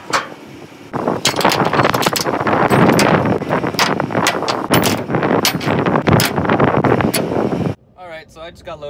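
A ratchet strap clicks as it is tightened.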